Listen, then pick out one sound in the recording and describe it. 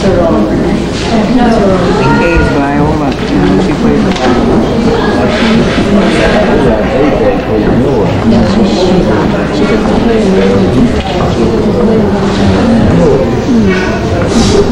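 A crowd of men and women chatter at once in a large room.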